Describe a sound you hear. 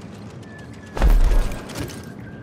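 A heavy thud lands with a deep boom.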